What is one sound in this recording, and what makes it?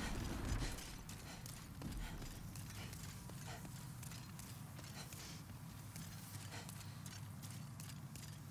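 Armoured footsteps thud quickly on stone.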